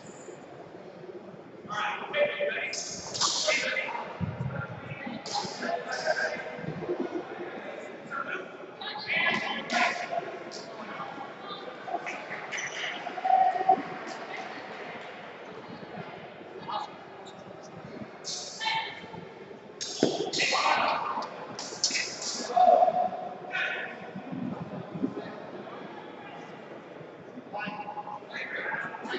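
Many adults chatter and call out in a large echoing hall.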